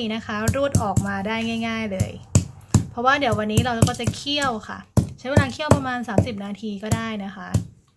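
A stone pestle thuds repeatedly on a wooden board.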